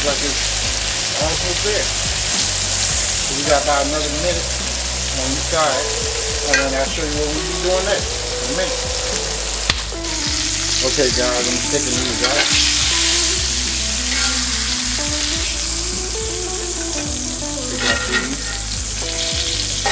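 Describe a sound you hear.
Metal tongs scrape and clink against a pan.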